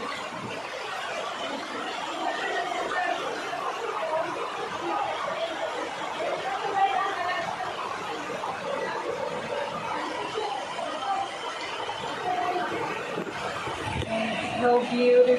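A small waterfall splashes and rushes steadily over rocks.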